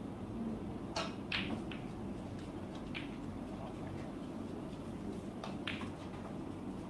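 Snooker balls click together softly.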